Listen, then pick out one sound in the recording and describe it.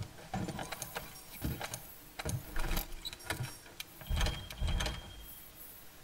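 Soft electronic menu clicks and chimes tick quickly.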